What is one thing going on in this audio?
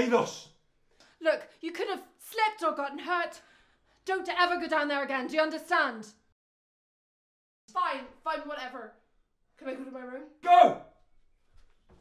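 A man speaks tensely nearby.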